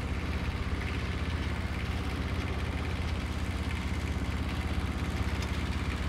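An engine rumbles steadily close by.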